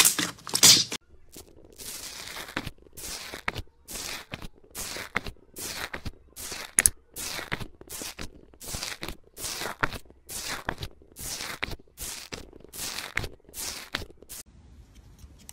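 A tool pokes into foamy slime with quick crackling pops.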